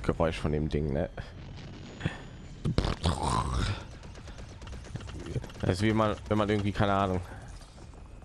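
Laser blasts fire in quick bursts.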